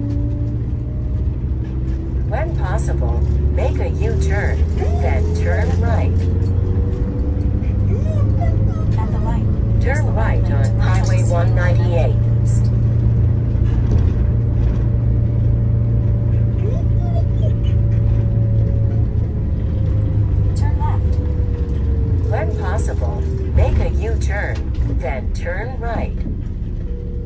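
A vehicle engine drones steadily from inside the cab, its pitch slowly rising and falling.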